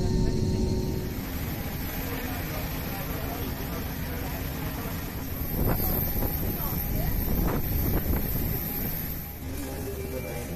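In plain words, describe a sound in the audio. A parked jet hums with a steady high whine outdoors.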